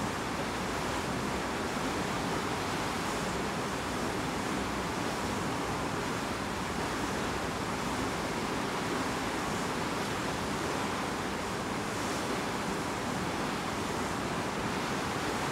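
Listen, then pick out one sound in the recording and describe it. Wind blows hard across the water.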